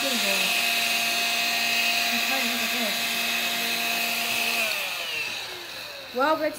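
A vacuum cleaner hums with a high whine and then winds down.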